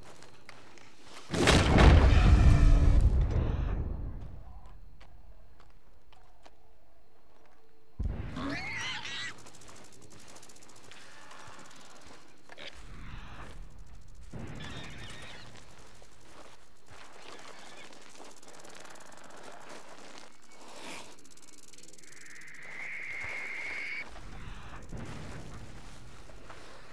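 Grass rustles as a man creeps through it.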